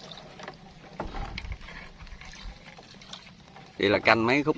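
A paddle splashes and swishes in water.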